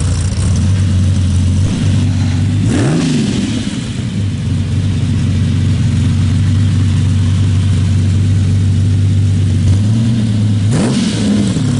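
A sports car engine idles with a deep, loud rumble.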